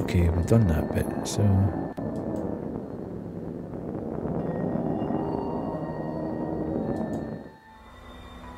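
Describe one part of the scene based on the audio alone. A middle-aged man talks animatedly into a microphone, up close.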